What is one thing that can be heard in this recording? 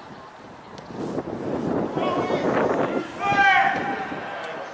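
Spectators cheer loudly nearby.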